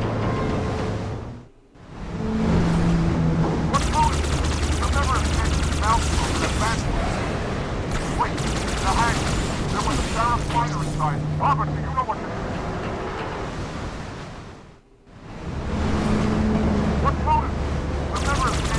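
A flying craft's engine hums steadily.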